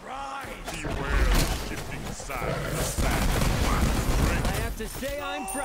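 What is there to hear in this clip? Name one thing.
Magical blasts crackle and boom in a video game battle.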